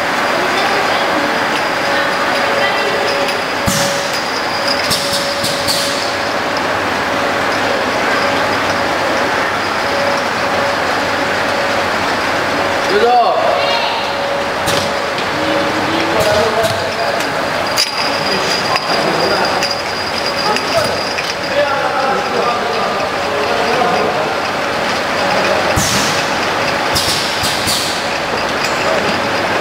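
A filling machine hums and whirs steadily.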